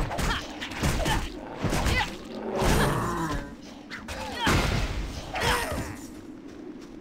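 Sword blows and magic blasts crash in quick bursts during a fight.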